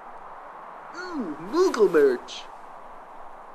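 A young man laughs in a high, wavering voice.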